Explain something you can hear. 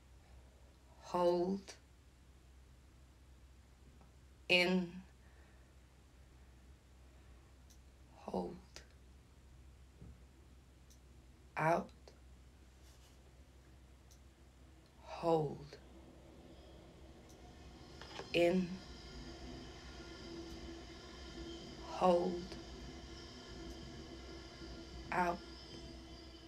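A young woman sings short notes close by, pausing between each.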